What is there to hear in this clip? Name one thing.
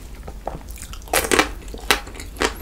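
A man bites into a crisp wafer bar with a crunch.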